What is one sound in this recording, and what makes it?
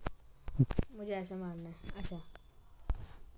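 A young boy speaks excitedly into a microphone.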